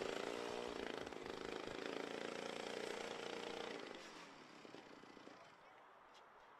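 A small motorcycle engine whines loudly as it passes, then fades into the distance.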